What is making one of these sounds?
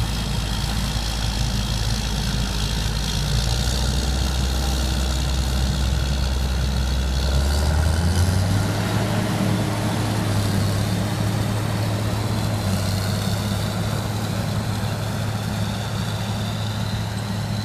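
A large tractor engine rumbles steadily and slowly moves away.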